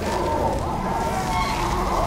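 Guns fire in short bursts nearby.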